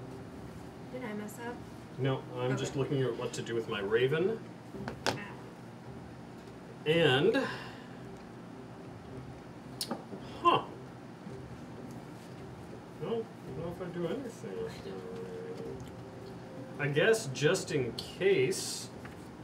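Several adults talk and banter around a table, heard through microphones.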